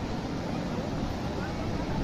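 Water gushes and splashes loudly.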